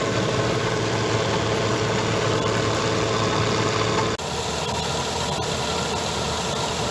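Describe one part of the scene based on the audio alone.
A combine harvester engine roars steadily close by.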